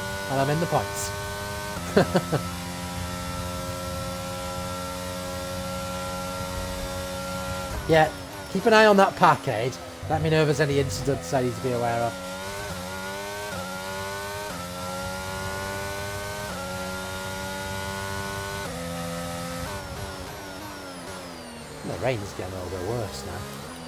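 A racing car engine whines at high pitch, rising and dropping as gears shift.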